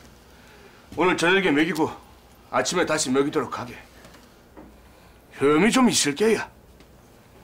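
A middle-aged man speaks in a tense, urgent voice nearby.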